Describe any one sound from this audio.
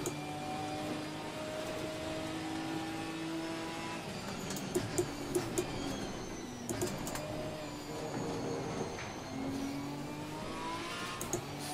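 A racing car engine roars and revs up and down through gear changes.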